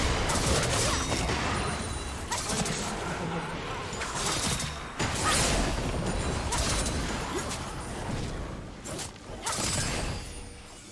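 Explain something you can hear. Small weapon hits clash in quick bursts.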